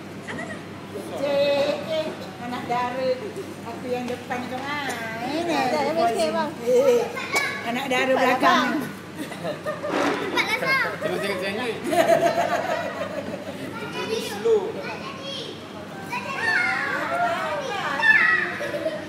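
Young children and women sing together close by.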